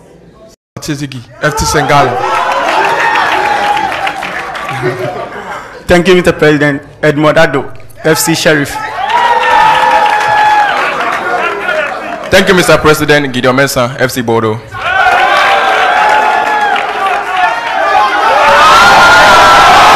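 A crowd of young men sings and chants loudly together.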